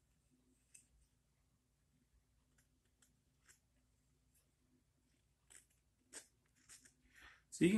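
A knife shaves thin curls from wood with short scraping strokes.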